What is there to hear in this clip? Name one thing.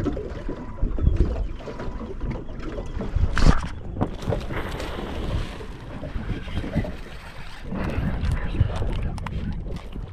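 A fishing reel clicks as the line is wound in.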